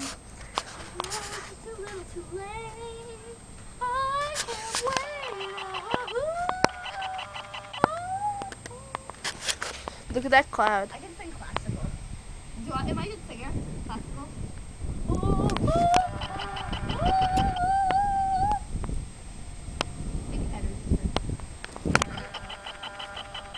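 A young girl sings a melody close by.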